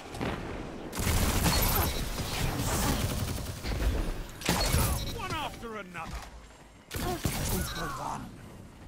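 Shotguns fire in loud, quick blasts.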